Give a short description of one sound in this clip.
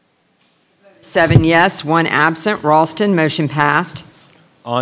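A woman speaks with some animation through a microphone.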